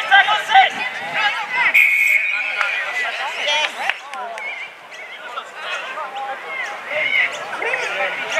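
Men shout and call to each other across an open field in the distance.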